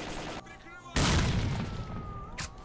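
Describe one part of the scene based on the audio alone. A rifle fires a single loud shot that echoes outdoors.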